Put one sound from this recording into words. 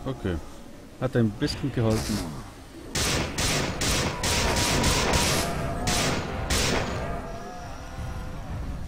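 A creature growls and shrieks.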